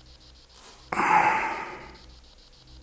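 A man cries out loudly nearby.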